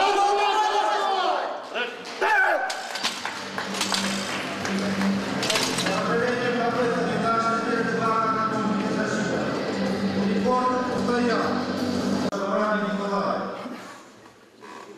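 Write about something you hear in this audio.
Men shout loudly to encourage a lifter in a large echoing hall.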